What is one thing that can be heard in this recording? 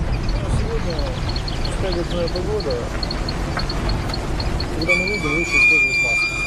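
A van engine rumbles as the van drives closer.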